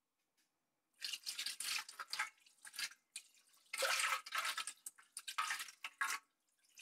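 Water pours from a jug and splashes onto a tray.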